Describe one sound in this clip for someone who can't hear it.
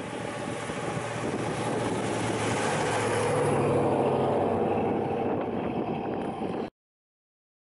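A car engine roars loudly as the car approaches and passes close by.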